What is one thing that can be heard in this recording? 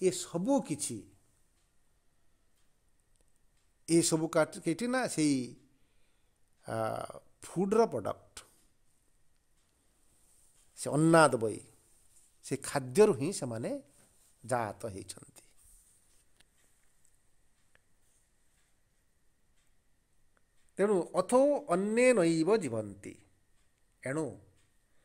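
A man talks calmly into a close microphone, with long pauses.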